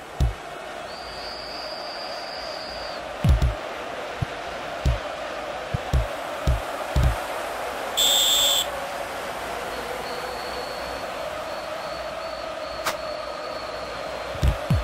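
A crowd roars steadily in a large stadium.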